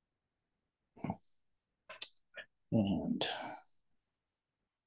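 An older man speaks briefly and calmly into a microphone, with long pauses.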